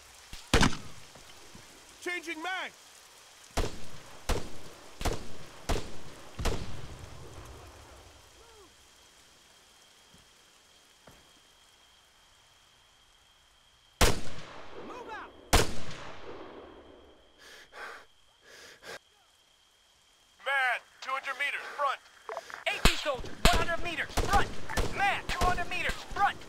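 Rifle shots crack loudly one at a time, each echoing away across open ground.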